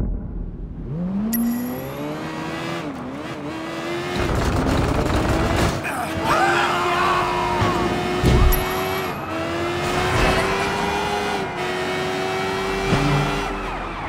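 A motorcycle engine starts, revs up and roars steadily as the bike rides along.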